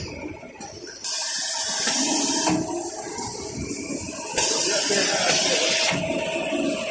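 Air hisses loudly in bursts from a machine.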